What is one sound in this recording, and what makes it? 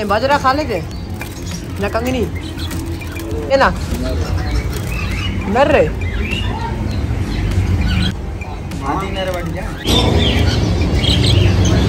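A wire cage rattles as a hand reaches in.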